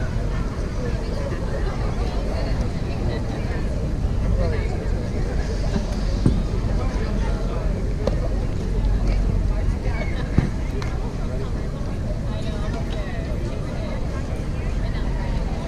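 A crowd of spectators chatters and calls out in the open air.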